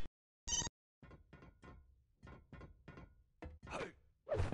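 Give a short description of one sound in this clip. Footsteps patter quickly on a metal floor.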